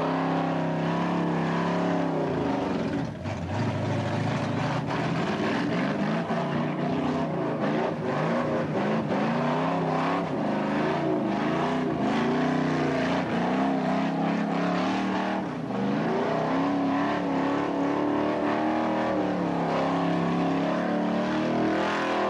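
A car engine revs hard and loud, rising and falling.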